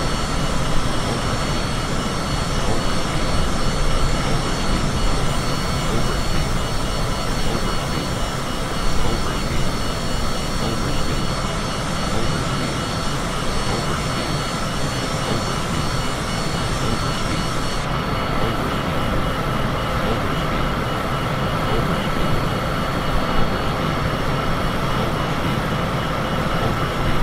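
Jet engines roar steadily with a high whine.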